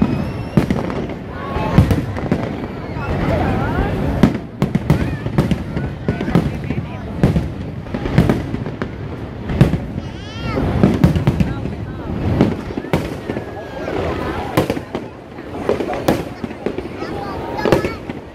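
Fireworks boom and crackle overhead, again and again.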